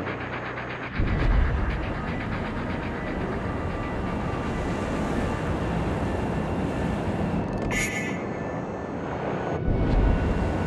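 Heavy ship guns fire with loud, deep booms.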